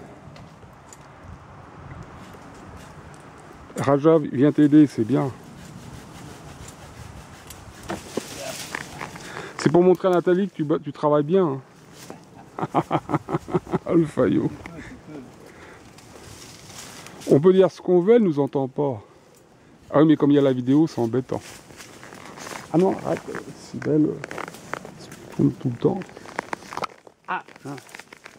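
Twigs and leaves rustle and crackle underfoot.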